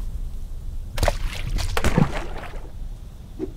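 A game plays a swishing sound effect.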